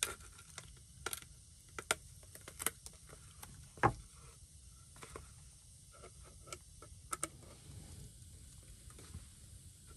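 Plastic crinkles and clicks as it is handled.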